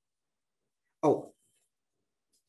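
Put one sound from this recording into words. A man speaks briefly over an online call.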